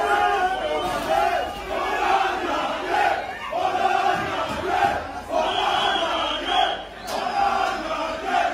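A crowd of men chants and shouts loudly in an echoing hall.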